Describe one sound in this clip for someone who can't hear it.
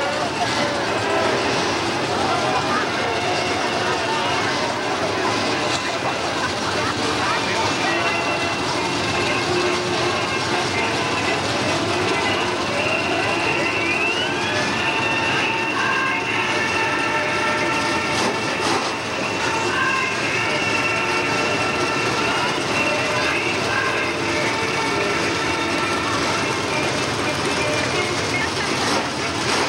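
Race car engines roar and rev loudly nearby.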